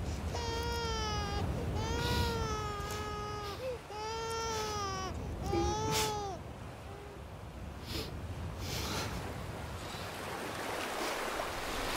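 A man sobs quietly.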